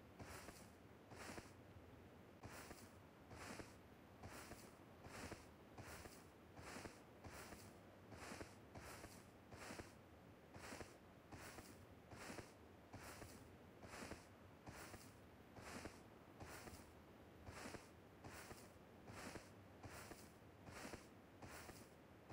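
Footsteps thud in a steady running rhythm.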